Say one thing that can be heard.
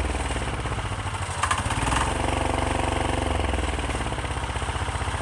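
A small diesel engine revs up and settles back to idle.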